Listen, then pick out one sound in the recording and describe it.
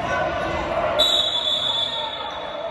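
A referee blows a long, shrill whistle.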